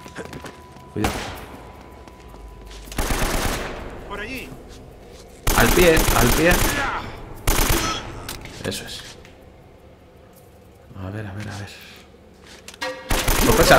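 Rifle shots fire in loud bursts.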